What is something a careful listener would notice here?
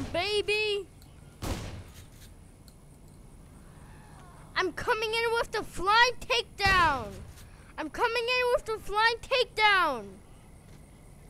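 A young boy talks with animation into a close microphone.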